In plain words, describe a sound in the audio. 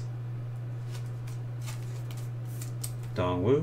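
A plastic card sleeve rustles and slides.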